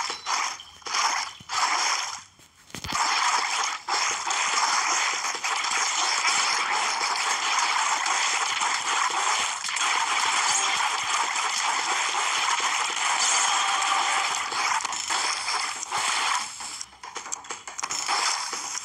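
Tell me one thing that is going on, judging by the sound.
Quick swishing and splattering game sounds play over and over.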